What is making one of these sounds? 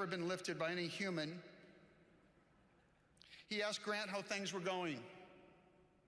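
A man speaks into a microphone in a large echoing hall, in a calm, measured voice.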